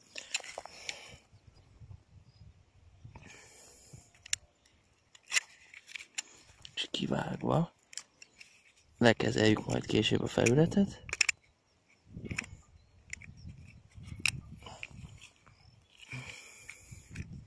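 A blade scrapes and picks at bark on a small branch.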